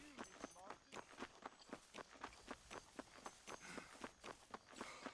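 Quick footsteps run over a dirt path.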